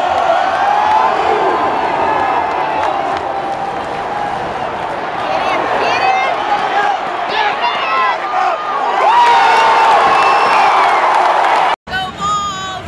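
A large stadium crowd cheers and roars outdoors.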